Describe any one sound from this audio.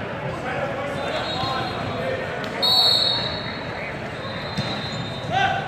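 Sneakers squeak on a hard court floor.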